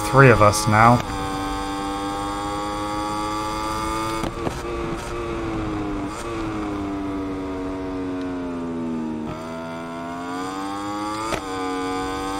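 A racing motorcycle engine screams steadily at speed, dipping briefly at each gear change.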